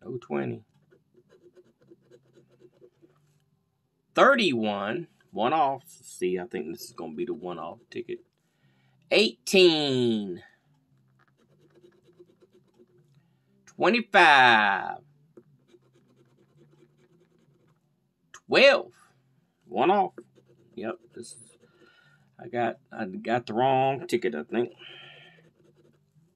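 A coin scratches rapidly across a card.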